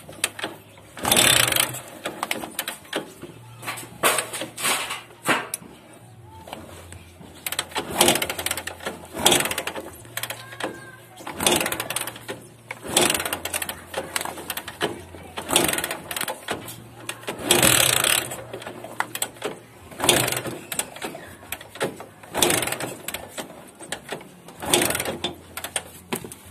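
A motorcycle engine revs in short bursts.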